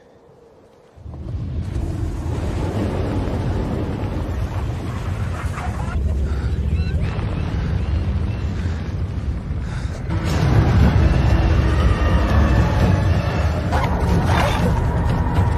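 A strong wind roars and howls outdoors.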